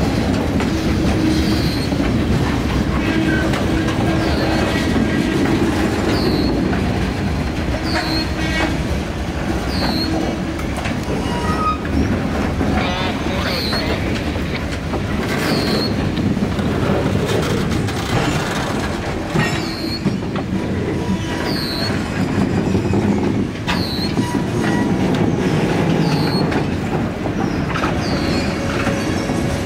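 Metal wheels squeal against the rails.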